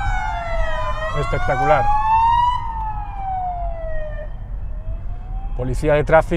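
A siren wails close by, its pitch sliding slowly up and down.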